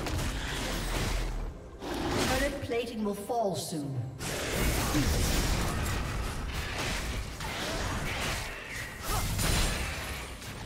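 Game spell effects and hits crackle and whoosh in a fight.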